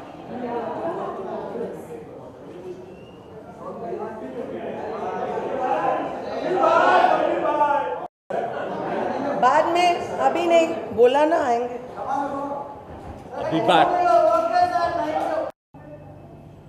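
A crowd of men shouts and calls out loudly close by.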